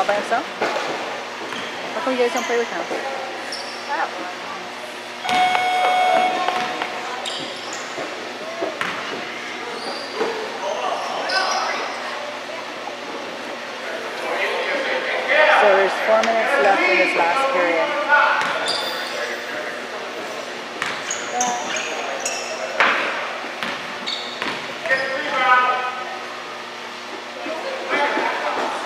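Sneakers squeak on a hard court floor.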